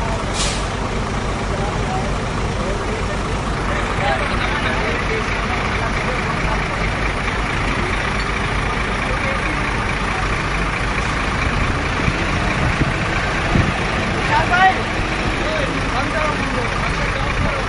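A crane's engine rumbles steadily close by.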